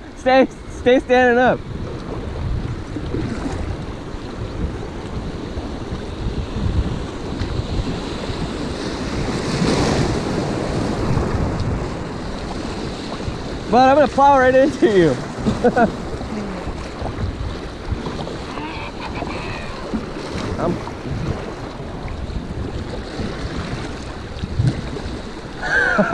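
River water rushes and splashes steadily, outdoors.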